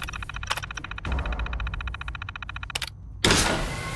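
A computer terminal chirps rapidly as text scrolls.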